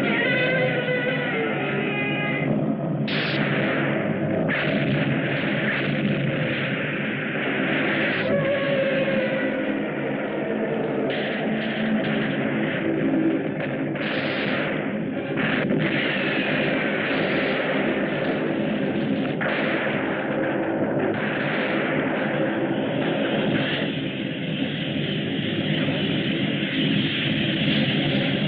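A giant monster roars loudly.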